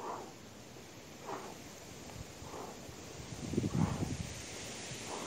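A man exhales sharply in rhythm close by.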